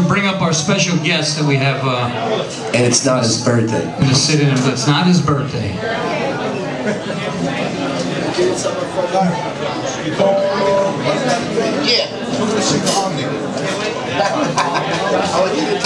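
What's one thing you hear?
Electric guitars play loudly through amplifiers.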